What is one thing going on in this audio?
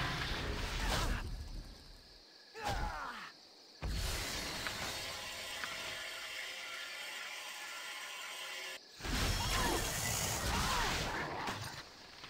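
Fiery spell blasts burst and crackle.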